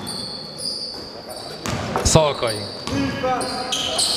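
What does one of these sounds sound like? A basketball bounces on the floor in a large echoing hall.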